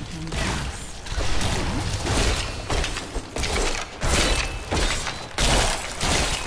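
Magic blasts and weapon blows crash in a fight.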